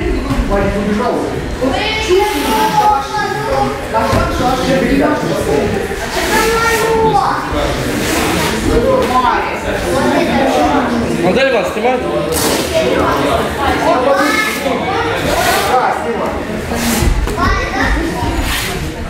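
Children and young men chatter in an echoing hall.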